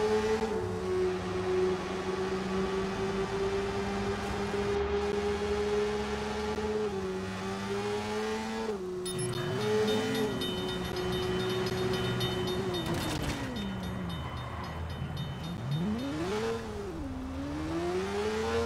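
A car engine hums steadily, then slows and revs up again.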